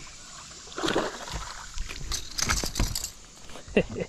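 A fish flops and thumps on a boat deck.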